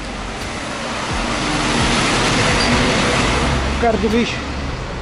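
A heavy truck drives past with a rising and fading engine rumble.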